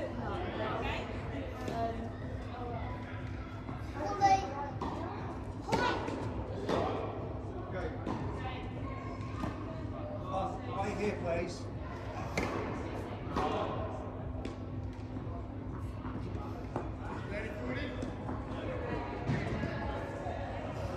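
Tennis balls are struck with rackets, echoing in a large indoor hall.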